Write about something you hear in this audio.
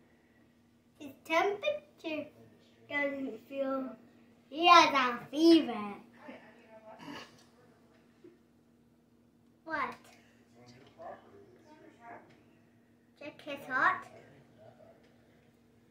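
A young boy talks and laughs with animation, close by.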